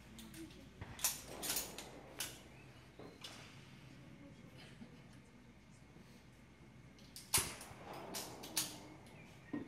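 .22 semi-automatic target pistols fire single shots at an outdoor range.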